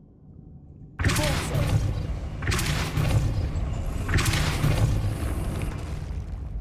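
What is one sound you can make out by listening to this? A magic spell bursts with loud crackling blasts.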